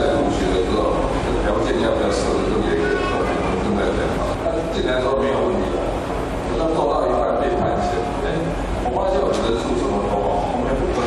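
A middle-aged man speaks with animation into a microphone over loudspeakers.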